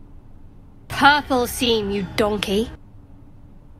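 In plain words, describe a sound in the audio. A young woman speaks loudly and excitedly into a close microphone.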